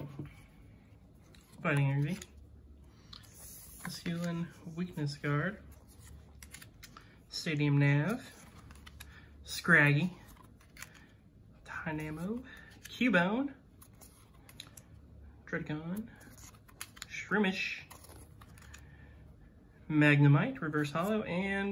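Trading cards slide and flick against each other in someone's hands.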